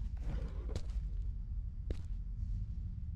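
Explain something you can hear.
A man speaks briefly close to a microphone.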